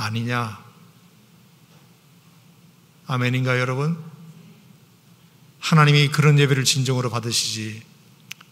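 An older man speaks slowly and calmly into a microphone, with long pauses.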